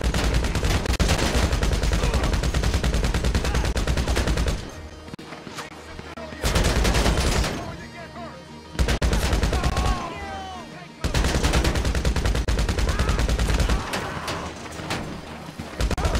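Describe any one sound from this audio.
A rifle fires rapid bursts of gunshots, close by.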